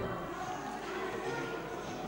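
Men and women talk in low voices across a large, echoing room.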